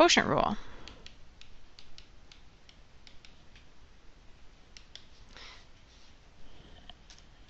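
A pen taps and scratches lightly while writing.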